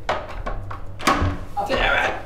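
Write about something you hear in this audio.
A door latch clicks as a door opens.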